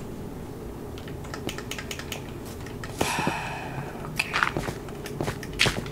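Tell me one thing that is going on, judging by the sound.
Short crunching taps repeat as blocks are dug out in a video game.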